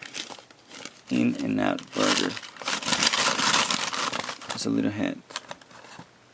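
Paper rustles and crinkles as it is pulled from a box.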